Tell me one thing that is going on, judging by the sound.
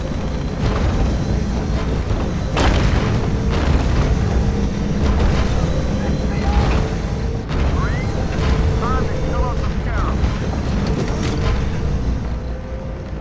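A deep engine hums loudly and steadily.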